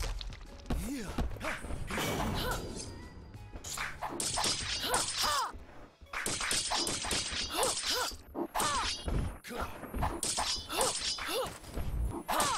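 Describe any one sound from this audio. A spear whooshes through the air.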